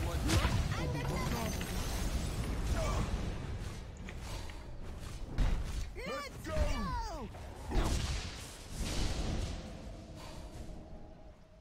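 Magical spell effects crackle and whoosh.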